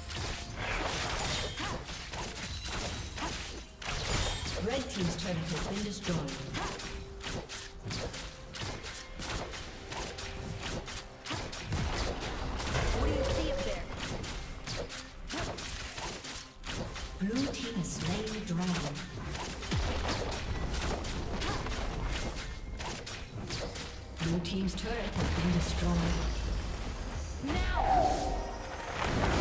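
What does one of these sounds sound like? Magic blasts and sword hits crackle and thump in a busy fight.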